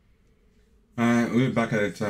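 A young man speaks with excitement into a close microphone.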